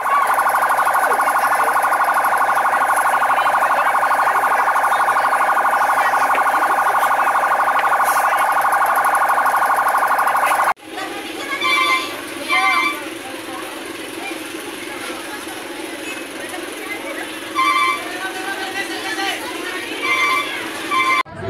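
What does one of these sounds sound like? A crowd of people shouts nearby.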